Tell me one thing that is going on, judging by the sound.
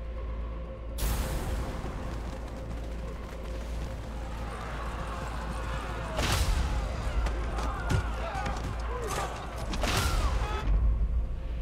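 Explosions boom and weapons fire in a noisy battle.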